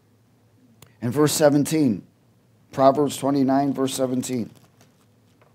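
A middle-aged man speaks calmly into a head microphone, pausing between phrases.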